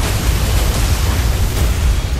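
Gunfire and explosions crack and boom.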